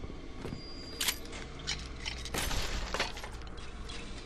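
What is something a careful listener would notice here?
Items are picked up with short chiming sounds.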